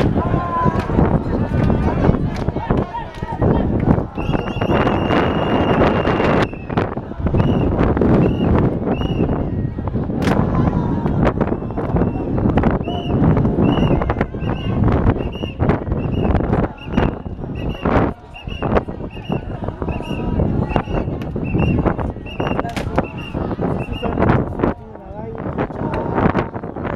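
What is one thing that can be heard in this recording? A large crowd of men and women talks and shouts outdoors.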